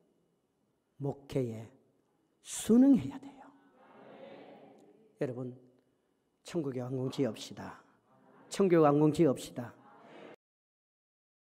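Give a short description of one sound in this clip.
A man preaches forcefully into a microphone in a large echoing hall.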